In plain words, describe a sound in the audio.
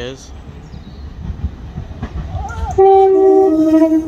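A train rumbles closer as it approaches.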